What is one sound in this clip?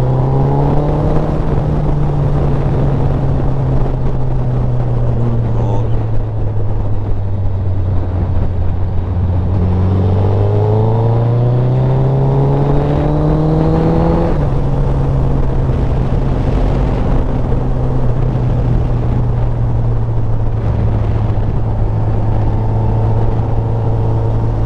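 A motorcycle engine drones steadily and revs up as the bike speeds up.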